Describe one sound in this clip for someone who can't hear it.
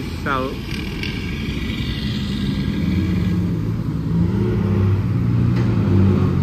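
Car engines hum as vehicles drive slowly along a road.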